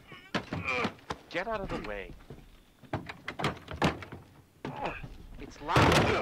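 A door handle rattles.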